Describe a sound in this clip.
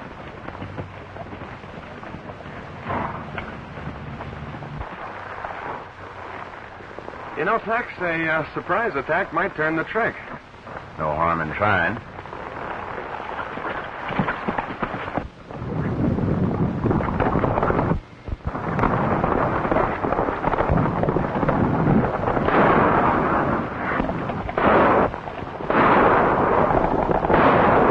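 Horses gallop over the ground.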